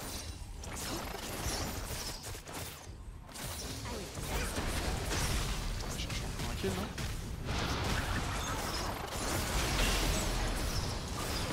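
Video game battle sounds clash with bursts of spells and hits.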